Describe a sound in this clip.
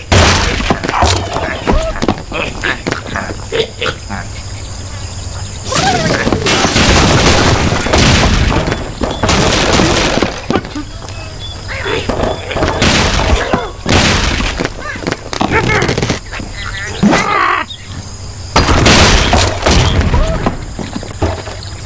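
Wooden blocks crash and clatter as a structure collapses.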